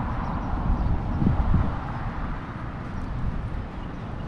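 Traffic passes on a nearby road.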